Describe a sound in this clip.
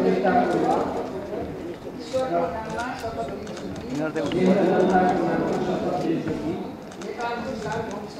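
A woman reads out through a microphone.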